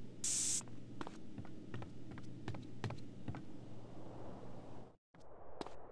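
Footsteps thump quickly on a wooden floor.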